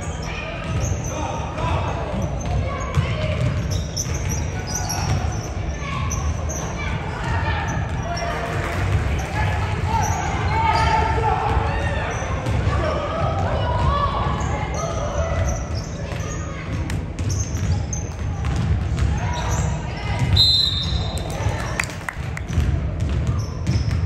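Young players call out and chatter across the gym.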